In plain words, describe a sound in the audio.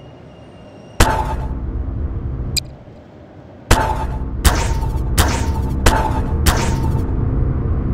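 A toy-like tool gun fires with sharp zaps.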